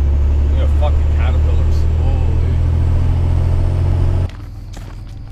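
A truck engine hums steadily inside the cab.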